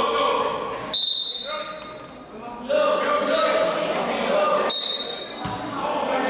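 A referee's whistle blows sharply twice.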